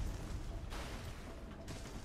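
Water splashes as an armoured figure rolls.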